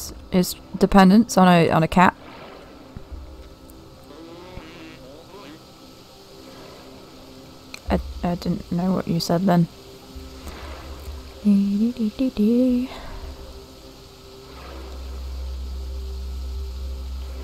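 Water laps softly around a floating raft.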